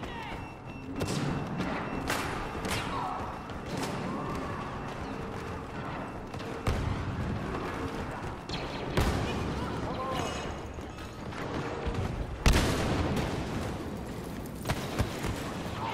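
Blaster rifles fire in sharp, repeated shots.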